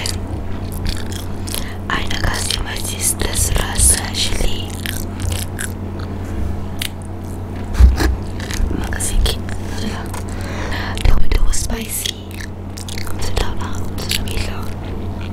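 A young woman speaks softly and closely into a microphone.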